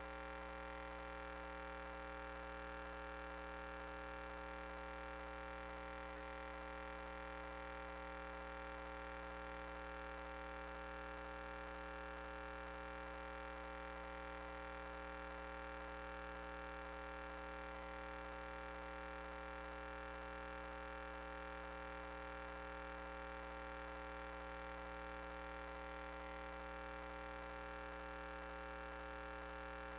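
A small motor whirs steadily.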